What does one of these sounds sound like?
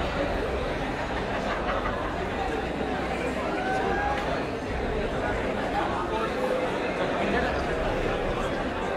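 A crowd of men and women chatters loudly all around, close by.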